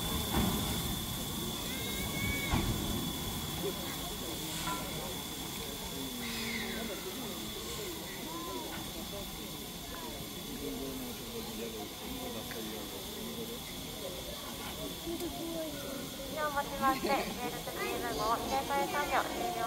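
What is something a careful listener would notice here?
Steam hisses steadily from locomotives outdoors.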